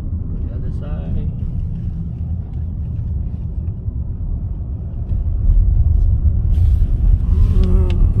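A car's tyres rumble steadily on the road.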